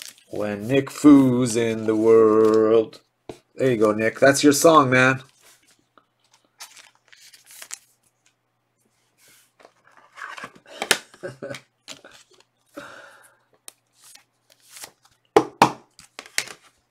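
Trading cards and plastic sleeves rustle and click in a man's hands.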